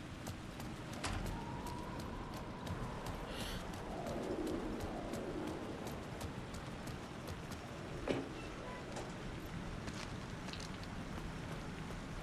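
Footsteps splash and crunch on wet, littered ground.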